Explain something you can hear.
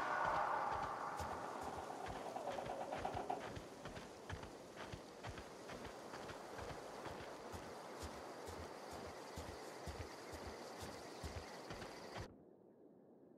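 Footsteps crunch steadily over grass and dirt.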